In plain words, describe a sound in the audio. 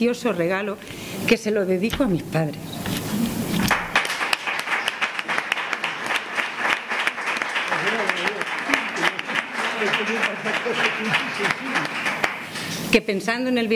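A middle-aged woman speaks with emotion into microphones, close by.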